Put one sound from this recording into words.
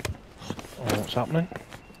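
A heavy kick lands with a dull thud.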